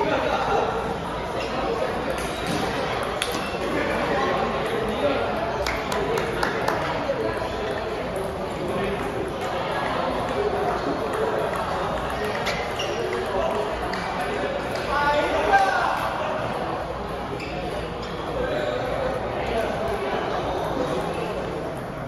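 Table tennis balls click against paddles and tables.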